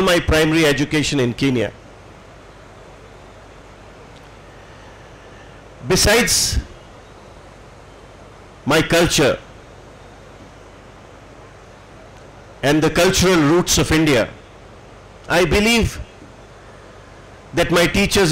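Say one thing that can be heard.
An elderly man gives a speech through a microphone and loudspeakers, in short phrases with long pauses.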